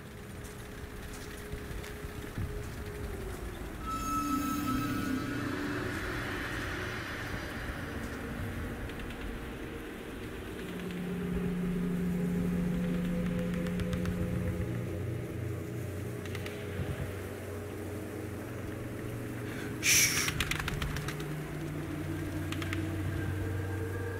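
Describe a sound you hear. Small fires crackle quietly.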